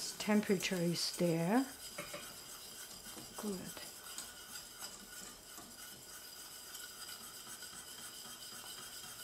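A wire whisk scrapes and clinks against a metal pot.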